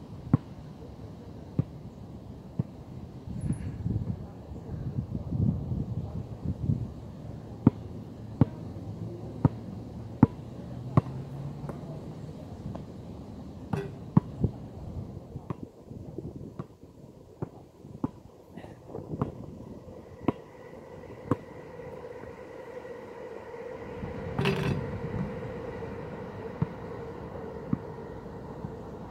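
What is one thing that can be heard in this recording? A basketball bounces sharply on an outdoor court.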